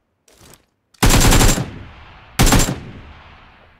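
A rifle fires loud single shots that ring out outdoors.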